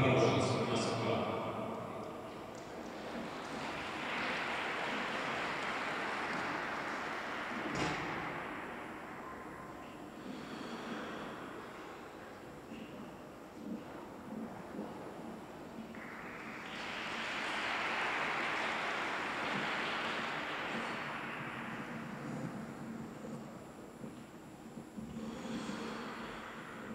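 Skate blades scrape and hiss across ice in a large echoing hall.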